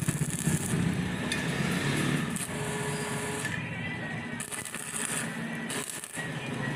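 An electric welding arc crackles and sizzles in short bursts.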